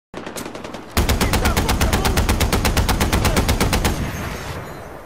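A machine gun fires rapidly and loudly, then stops.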